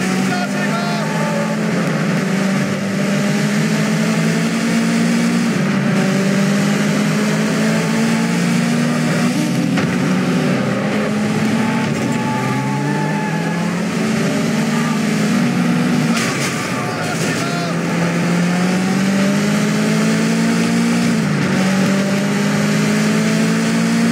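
A car engine roars loudly, rising in pitch and dropping as gears change.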